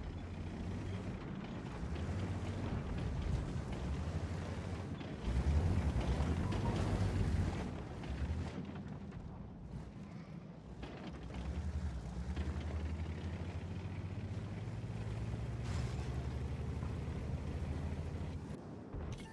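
A tank engine rumbles low and steady.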